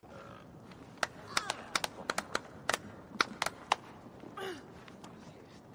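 A crowd of people claps and cheers.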